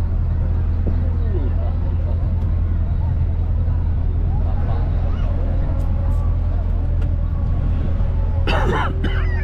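A boat engine rumbles steadily, close by.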